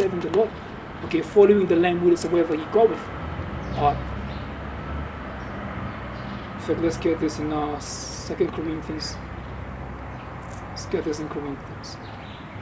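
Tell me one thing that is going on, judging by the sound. A young man speaks calmly close by, outdoors.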